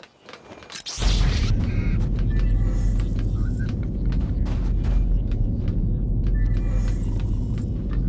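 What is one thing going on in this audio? A floating metal crate hums with a low, steady drone.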